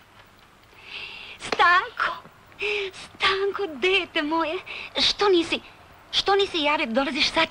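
A woman speaks with emotion close by.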